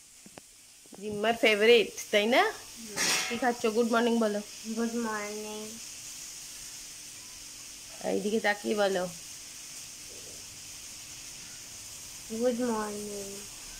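A young girl speaks close by, in an animated way.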